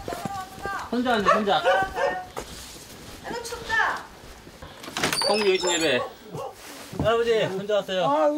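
A young man calls out loudly and speaks nearby.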